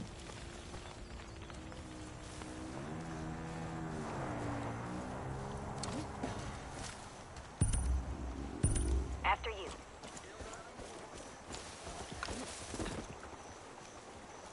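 Footsteps crunch over dry ground and grass.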